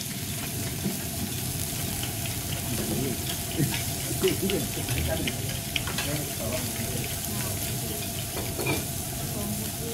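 A shaker clicks and rattles as seasoning is shaken out.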